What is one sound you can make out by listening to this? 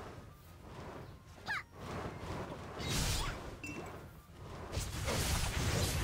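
Magic spells burst and whoosh in quick blasts.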